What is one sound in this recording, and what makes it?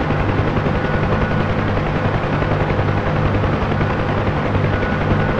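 A helicopter engine whines steadily.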